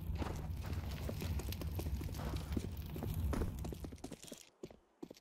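Flames from an incendiary grenade crackle and roar in a video game.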